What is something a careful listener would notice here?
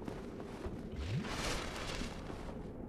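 A magical healing effect whooshes and shimmers.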